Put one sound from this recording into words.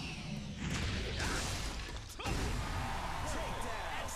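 A heavy hammer smashes into a metal machine with a loud crash.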